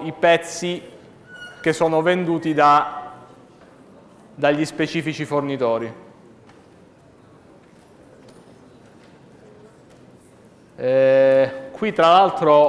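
A man lectures through a microphone, speaking in bursts with pauses.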